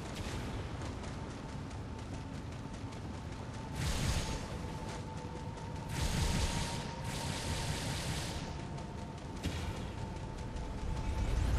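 Metallic footsteps clank quickly on rock.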